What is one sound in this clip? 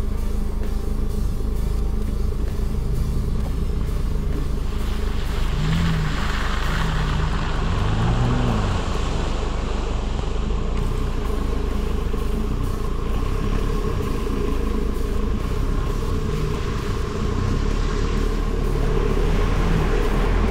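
A vehicle engine rumbles steadily up close.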